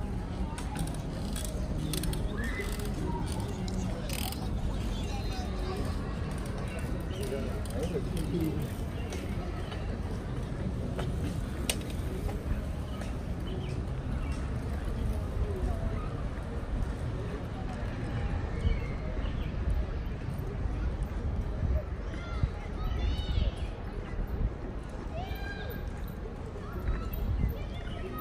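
Bicycle tyres whir on smooth pavement.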